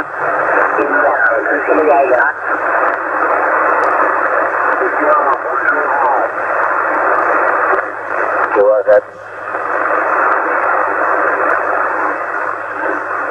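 Static hisses steadily from a radio receiver.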